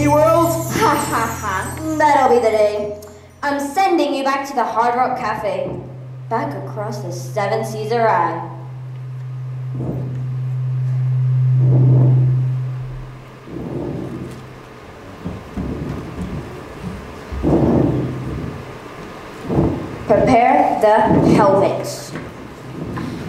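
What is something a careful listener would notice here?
A teenage girl speaks clearly in a large echoing hall.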